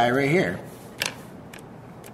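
A calculator is set down with a light knock.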